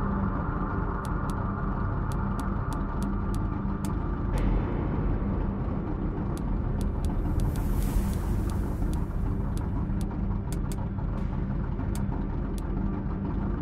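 Short, sharp menu clicks tick again and again as a selection steps through a list.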